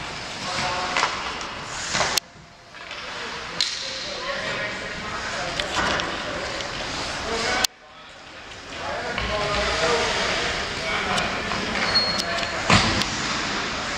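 Hockey sticks clack on ice and pucks.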